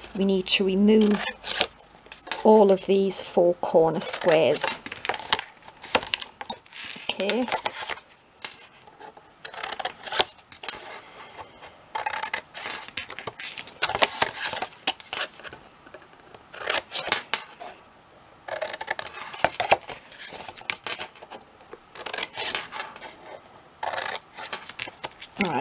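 Scissors snip through thick paper.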